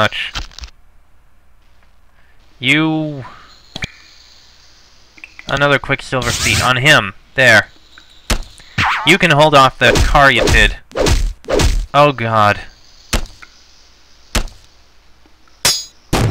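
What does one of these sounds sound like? A computer game plays short bursts of sound effects.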